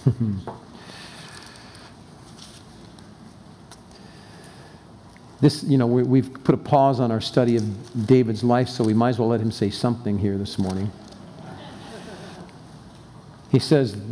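An elderly man reads aloud calmly through a microphone.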